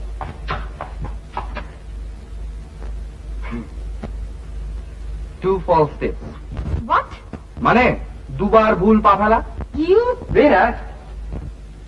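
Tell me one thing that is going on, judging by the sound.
A young man speaks with animation.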